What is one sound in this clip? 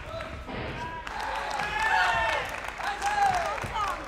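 A crowd cheers loudly in a large hall.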